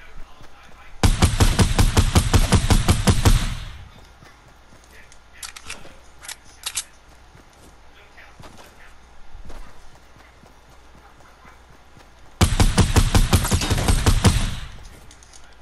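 Rapid gunfire rattles in a fast burst.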